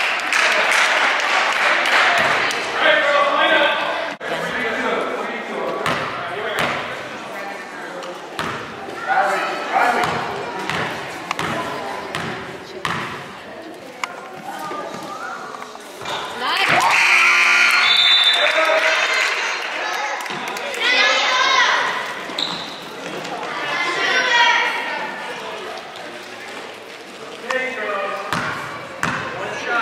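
A crowd of spectators cheers and shouts in a large echoing gym.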